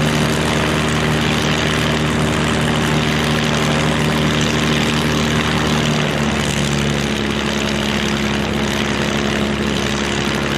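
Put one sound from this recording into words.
Several large piston engines rumble together.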